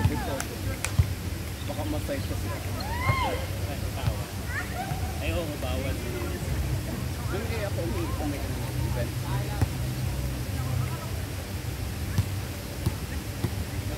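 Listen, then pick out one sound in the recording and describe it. A volleyball thumps off players' hands.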